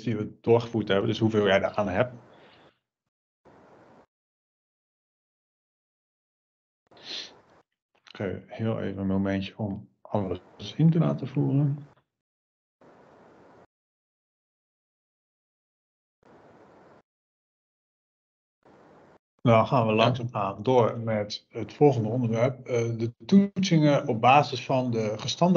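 A young man speaks calmly through an online call, with pauses.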